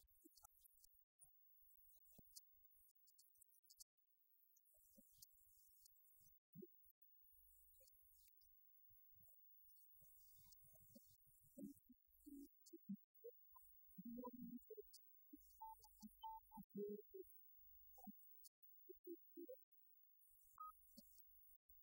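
An acoustic guitar is strummed and plucked.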